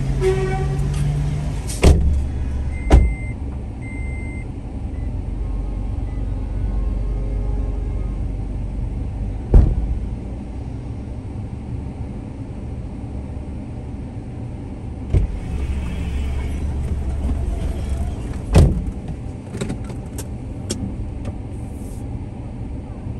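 Traffic rumbles steadily all around outdoors.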